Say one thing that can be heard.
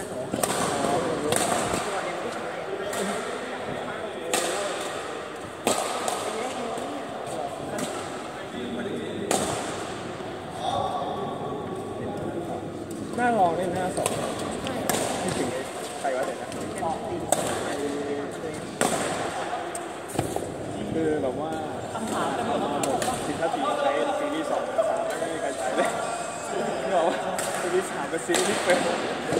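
Men call out during play in a large echoing hall.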